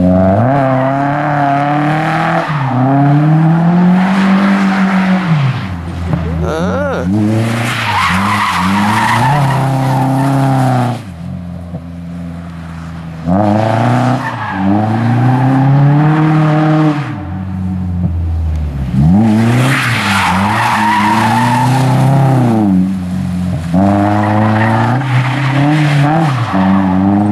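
A car engine revs hard and wails up and down as the car drifts.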